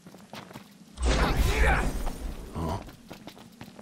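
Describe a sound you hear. A sharp magical crackle bursts and fades.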